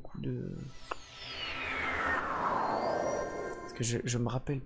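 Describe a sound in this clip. A shimmering magical whoosh sweeps downward in pitch.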